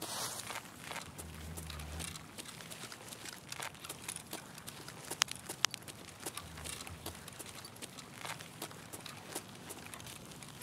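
Footsteps tap and scuff steadily on hard ground.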